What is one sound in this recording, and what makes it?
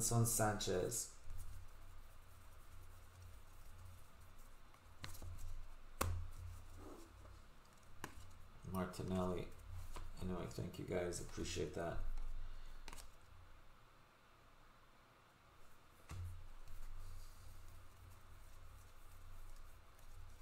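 Trading cards rustle and click as they are shuffled by hand.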